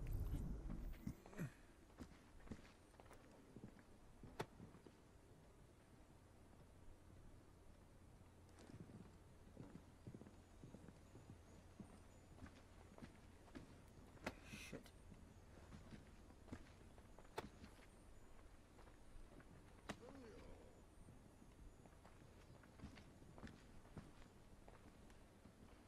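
Footsteps creak softly on wooden floors and stairs.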